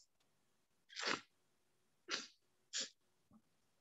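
A young man blows his nose.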